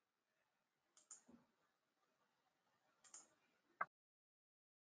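Women say brief goodbyes quietly through an online call.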